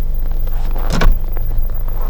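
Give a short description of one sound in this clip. A car's tailgate shuts with a solid thud.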